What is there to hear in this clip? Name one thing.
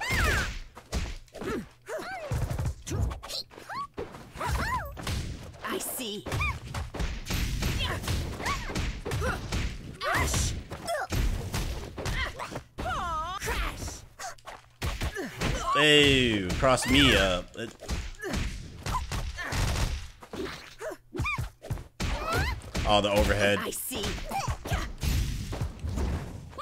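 A man talks with animation through a microphone, close by.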